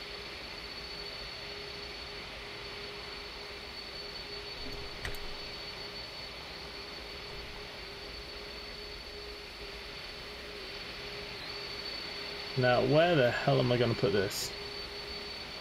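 A jet engine hums and whines steadily.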